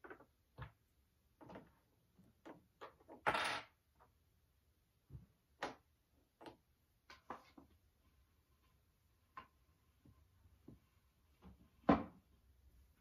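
Wooden blocks knock and clack together as they are stacked.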